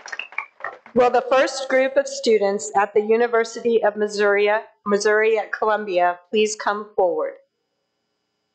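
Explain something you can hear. An older woman reads out calmly into a microphone.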